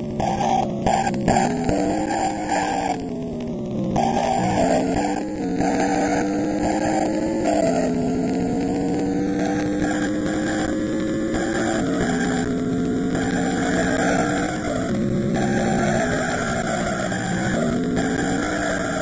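A video game car engine hums and whines, rising and falling in pitch as it speeds up and shifts gears.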